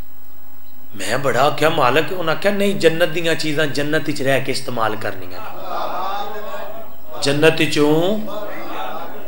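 A young man recites passionately into a microphone, heard through loudspeakers with echo.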